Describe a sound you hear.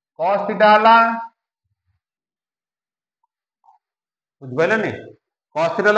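A middle-aged man speaks calmly and clearly in short phrases.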